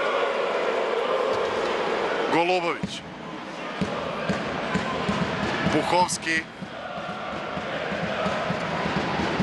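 A ball bounces on a hard court.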